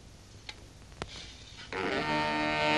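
A sword slides out of its metal sheath with a scrape.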